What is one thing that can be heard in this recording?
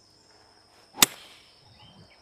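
A golf club strikes a ball with a sharp smack.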